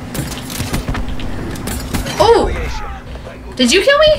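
Gunfire and explosions crackle from a video game.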